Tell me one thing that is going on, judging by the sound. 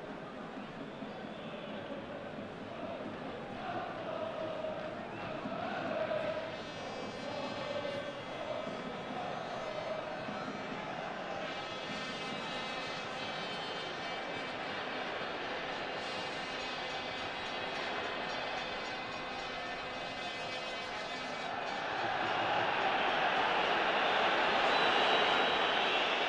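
A stadium crowd murmurs and cheers throughout, rising to a loud roar near the end.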